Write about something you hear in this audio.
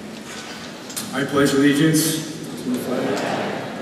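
A young man speaks through a microphone in a large echoing hall.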